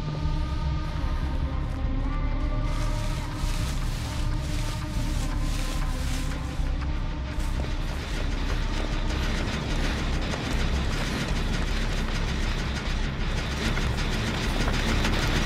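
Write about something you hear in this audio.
Quick footsteps crunch over rough ground.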